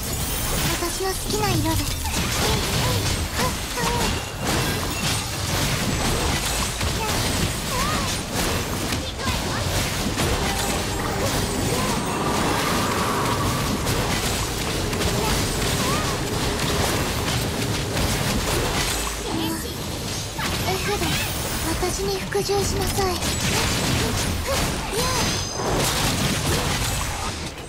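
Fast-paced game music plays loudly throughout.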